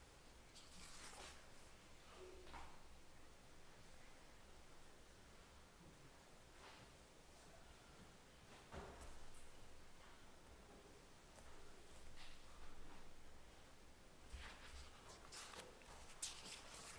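A man speaks quietly at a distance.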